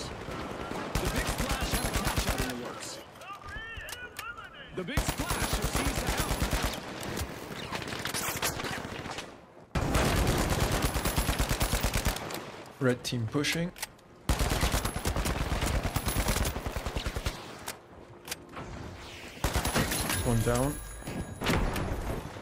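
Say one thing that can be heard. An automatic rifle fires rapid bursts.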